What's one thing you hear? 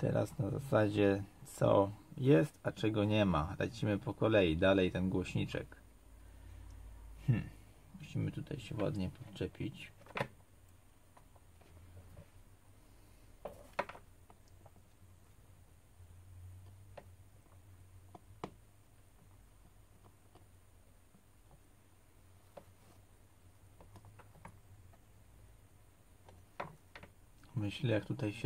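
A metal pick clicks against small plastic parts.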